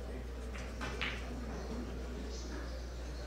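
Billiard balls clack together on a table.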